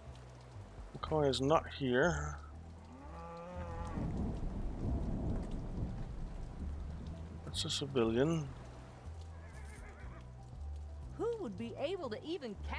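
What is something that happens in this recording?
Cows moo loudly several times.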